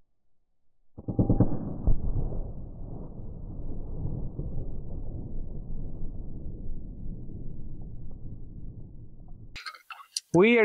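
An explosion bursts with a loud boom and a long rolling rumble.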